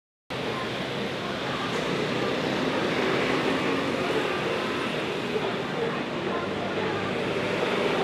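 Traffic hums steadily along a nearby street.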